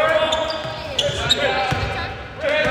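A basketball bounces on the floor with hollow thuds.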